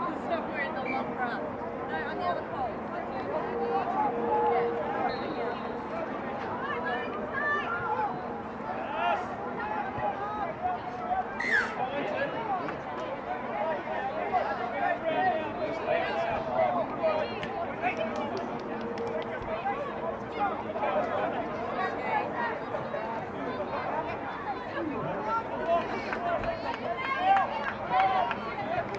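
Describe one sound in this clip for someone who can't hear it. Young women call out and shout to each other across an open field.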